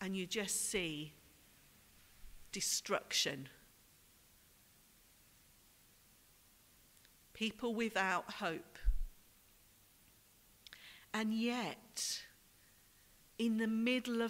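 A woman speaks calmly through a microphone in a large echoing hall, with long pauses.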